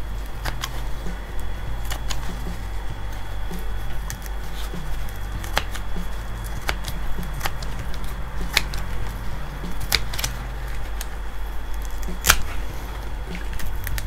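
Dry roots rustle and crackle as hands pull them apart in loose soil.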